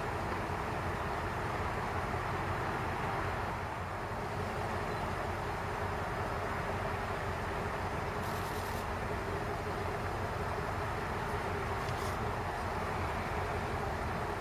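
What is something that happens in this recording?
A distant city hums steadily.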